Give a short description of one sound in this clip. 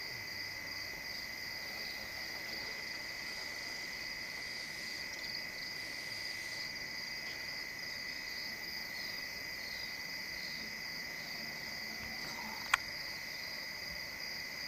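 An elephant sucks up water and splashes it softly.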